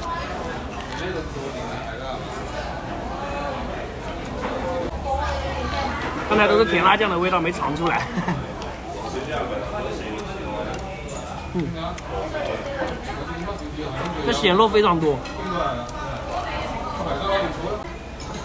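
A young man chews and crunches on lettuce.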